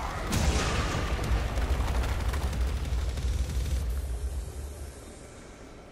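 A loud explosion booms and rumbles, with rock fragments crashing.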